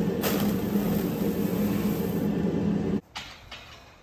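Dry grain pours and rattles into a plastic tub.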